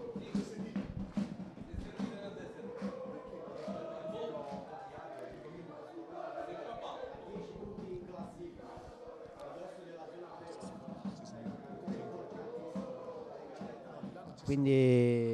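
Men call out to each other across an open field.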